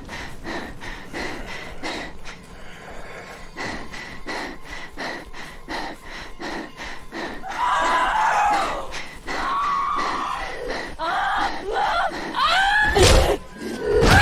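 Footsteps run quickly and steadily on hard ground.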